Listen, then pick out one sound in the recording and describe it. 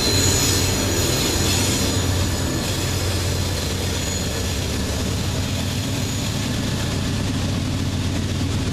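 Diesel freight locomotives rumble past, pulling a loaded train.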